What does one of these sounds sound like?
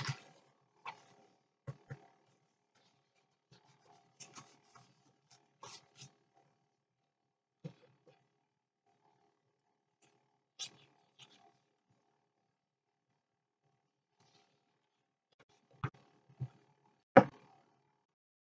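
Paper rustles and crinkles as hands press it down.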